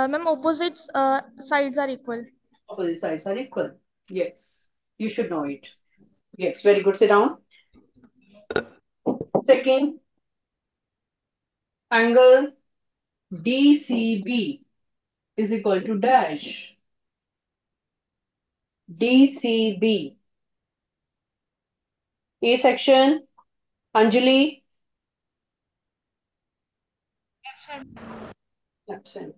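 A woman teaches calmly through a microphone.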